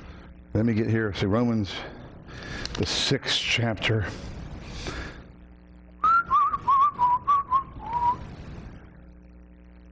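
A man speaks calmly into a microphone, as if preaching.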